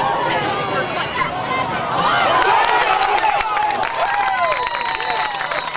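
Football players' pads and helmets clack together in a tackle.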